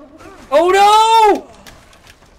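A monster lets out a loud, wavering shriek.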